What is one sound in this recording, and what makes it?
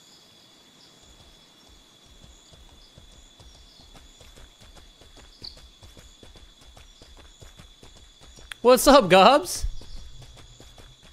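Footsteps crunch steadily over gravel and grass.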